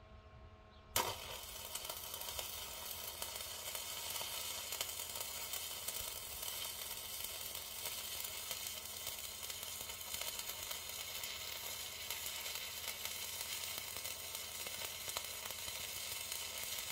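An arc welder crackles and sizzles steadily.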